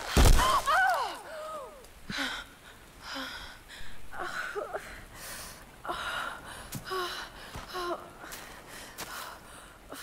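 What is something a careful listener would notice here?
A young woman gasps and groans in pain close by.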